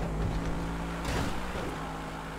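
A car lands hard on the road with a thud.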